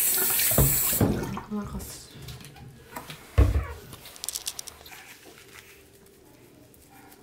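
Water splashes and drips as hands wash a puppy.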